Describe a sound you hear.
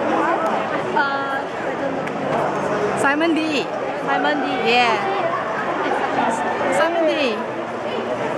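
Young women shriek excitedly in a crowd.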